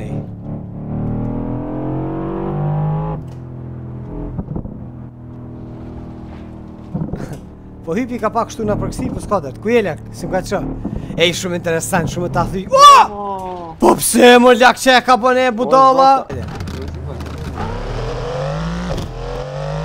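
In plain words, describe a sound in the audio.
A car engine revs up and shifts gears.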